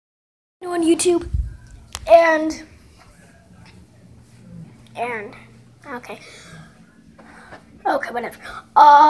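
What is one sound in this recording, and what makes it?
A boy talks with animation close to the microphone.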